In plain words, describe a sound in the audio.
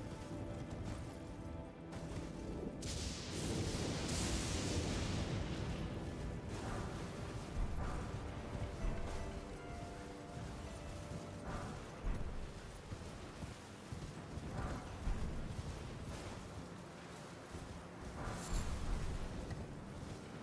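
Hooves thud on soft ground as a horse trots.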